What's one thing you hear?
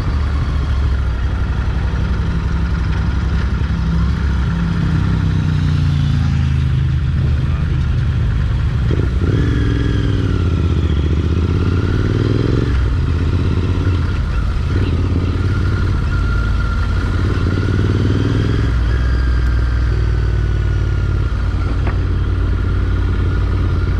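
A motorcycle engine rumbles steadily up close, rising and falling in pitch as it speeds up and slows down.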